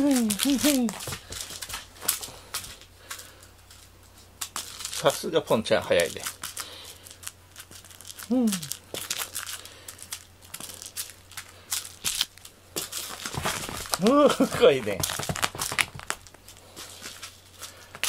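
A cat scrambles and thumps across a soft floor mat.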